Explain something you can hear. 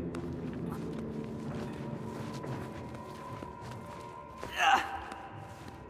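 Dry vines rustle and creak as a climber pulls up them.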